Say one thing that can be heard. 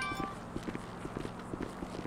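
Footsteps thud on a metal stairway.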